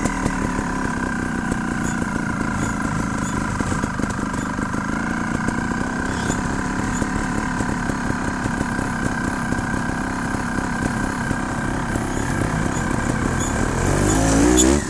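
A motorbike engine idles and hums steadily nearby.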